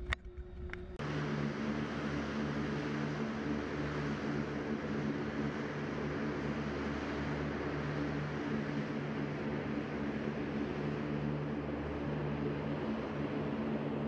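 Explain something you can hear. An A-10 jet with twin turbofan engines roars and whines as it takes off.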